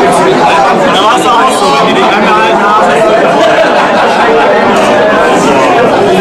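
A crowd of adult men and women chatters steadily all around.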